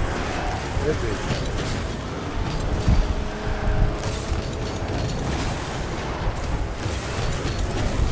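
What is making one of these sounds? A game car engine roars and hums steadily.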